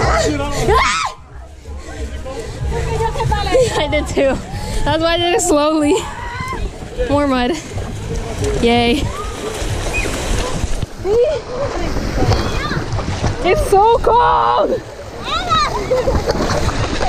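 Young women shout and laugh nearby outdoors.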